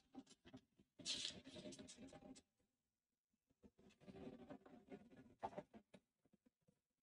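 Paper rustles in a man's hands.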